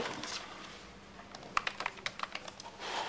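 Keys clack on a computer keyboard.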